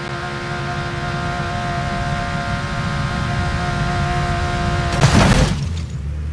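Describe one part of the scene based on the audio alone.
A car engine drones at high revs.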